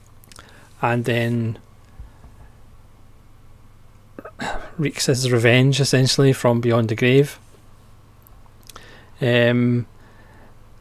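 A man talks calmly and close into a microphone, in short bursts with pauses.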